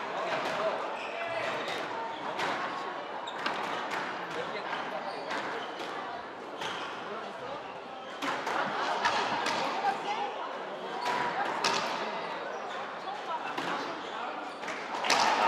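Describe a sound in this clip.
Shoes squeak and thud on a wooden court floor.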